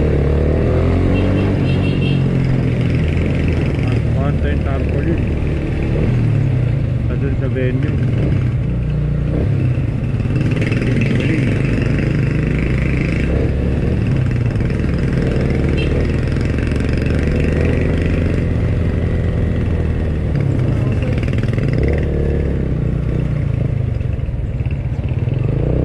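A motorcycle engine hums steadily and revs up as it speeds along.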